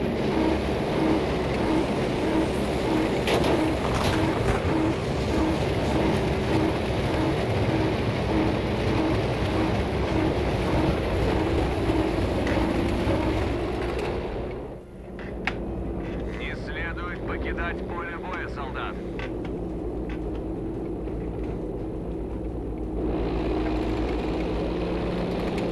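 A propeller plane's engine drones loudly and steadily, sounding muffled for a while.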